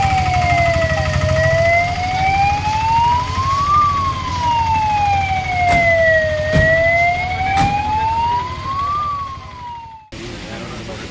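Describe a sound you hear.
An ambulance siren wails close by, rising and falling slowly.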